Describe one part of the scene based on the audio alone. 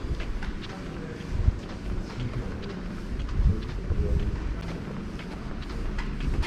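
Low wind rumbles outdoors.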